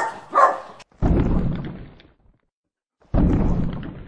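A large beast lets out a deep, rumbling roar.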